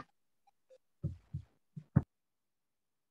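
A young man speaks briefly and calmly over an online call.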